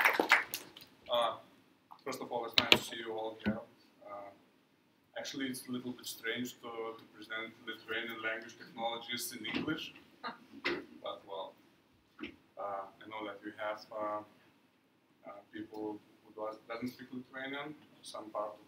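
A man speaks calmly to an audience.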